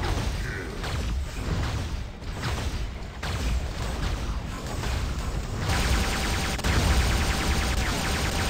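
Heavy mechanical footsteps stomp and clank.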